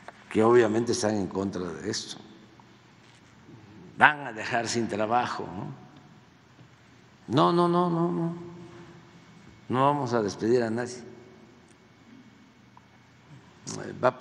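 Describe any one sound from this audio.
An elderly man speaks calmly into a microphone, with pauses, in a large echoing hall.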